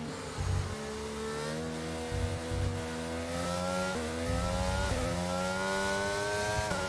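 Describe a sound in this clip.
A racing car engine whines loudly, rising in pitch as it speeds up and dropping briefly at each gear change.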